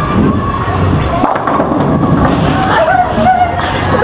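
Bowling pins clatter as they are struck.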